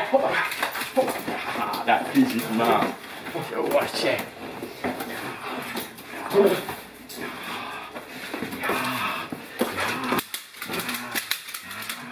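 A man gives firm commands nearby.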